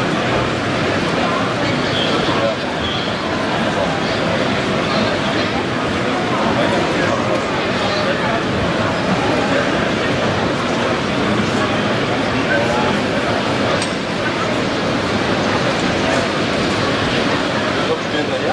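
A model train rumbles and clatters along its tracks.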